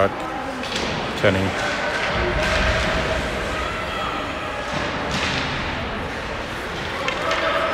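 Spectators murmur and call out nearby.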